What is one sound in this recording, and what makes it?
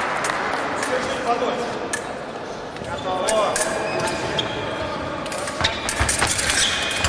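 Fencers' shoes squeak and tap on a hard floor in a large echoing hall.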